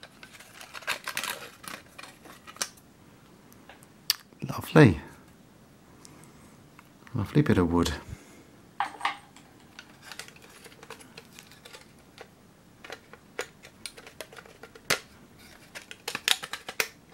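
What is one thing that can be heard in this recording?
Foam blocks rub and scrape against a metal tin.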